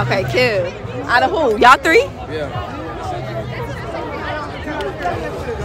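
A crowd chatters in the background outdoors.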